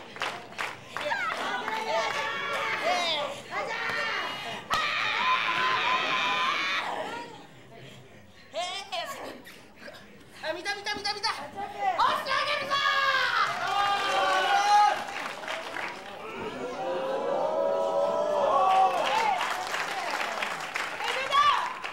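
Spectators shout and cheer.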